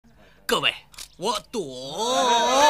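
A young man speaks excitedly into microphones.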